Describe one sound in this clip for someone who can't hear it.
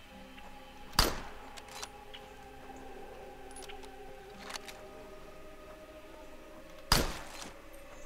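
A rifle fires two loud single shots.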